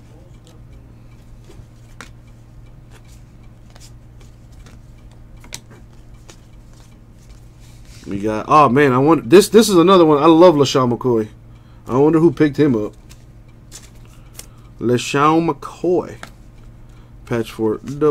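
Trading cards rustle and slide against each other as they are shuffled by hand.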